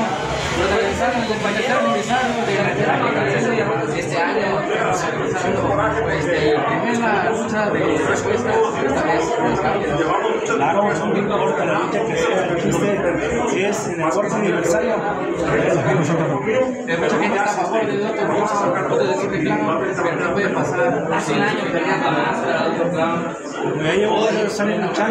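A middle-aged man answers with animation, close to a microphone.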